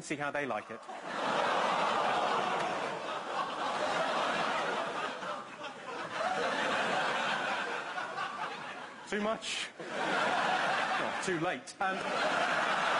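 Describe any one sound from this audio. A large studio audience laughs loudly.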